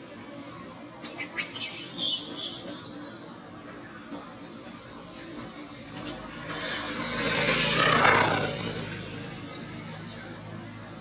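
A baby monkey squeals and cries close by.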